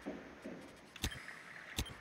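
A short burst of electronic static crackles.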